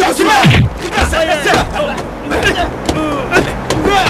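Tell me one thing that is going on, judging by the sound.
Young men shout and grunt while scuffling close by.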